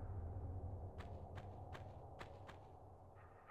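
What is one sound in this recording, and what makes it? Footsteps tap on a stone floor in an echoing chamber.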